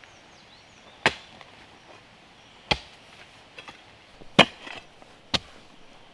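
A pole strikes the ground with sharp thuds.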